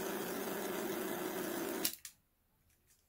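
A gas soldering torch hisses steadily close by.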